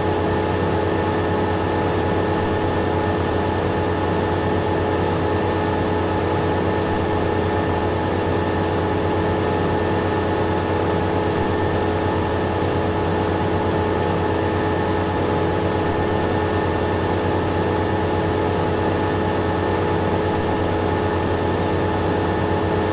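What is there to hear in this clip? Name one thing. A large harvester engine drones steadily.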